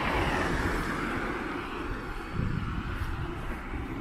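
A small truck drives away and fades into the distance.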